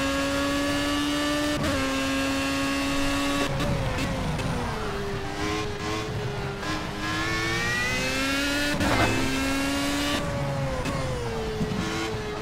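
A racing car engine whines at high revs, dropping in pitch at each gear change and climbing again.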